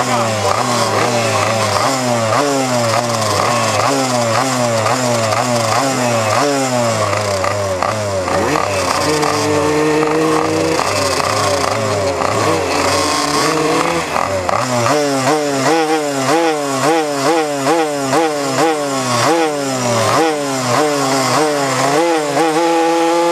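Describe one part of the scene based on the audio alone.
Small motorbike engines rev up and down over and over close by.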